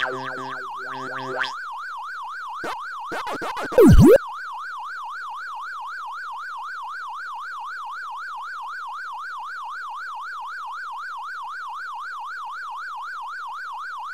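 A game's siren wails up and down steadily.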